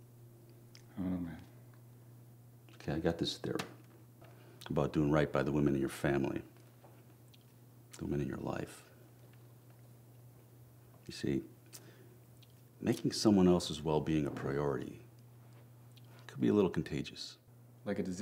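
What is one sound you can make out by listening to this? A man speaks calmly, close by, in short phrases with pauses.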